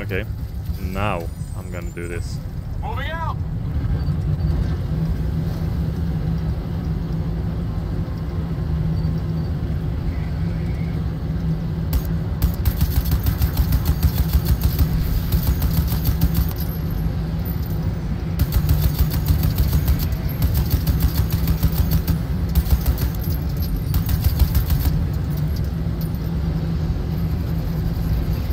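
A heavy vehicle engine rumbles steadily.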